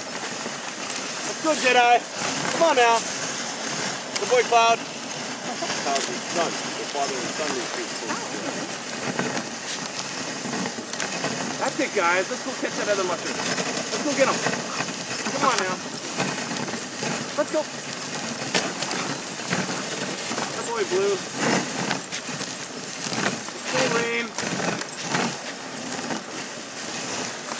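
Dogs' paws pad quickly on packed snow.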